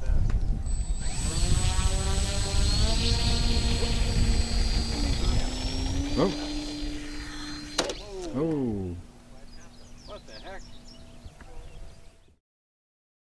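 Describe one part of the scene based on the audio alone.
A model airplane engine buzzes loudly and revs up.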